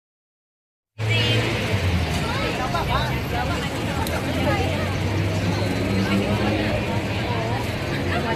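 A young man speaks to the crowd.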